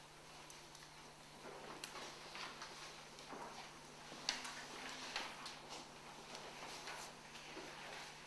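Paper sheets rustle and flip.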